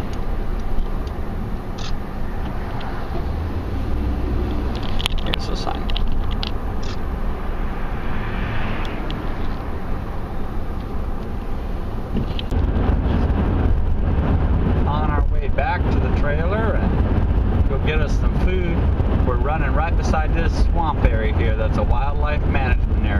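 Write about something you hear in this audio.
A car rumbles steadily as it drives along a road.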